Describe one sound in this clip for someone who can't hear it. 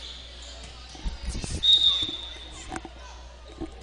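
A volleyball thumps as players hit it.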